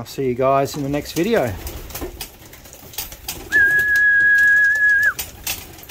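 Pigeon wings flap sharply close by.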